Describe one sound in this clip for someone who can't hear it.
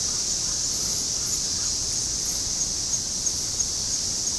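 Leaves and twigs rustle softly.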